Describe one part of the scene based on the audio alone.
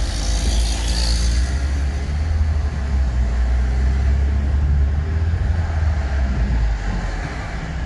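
Other cars drive past close by on the road.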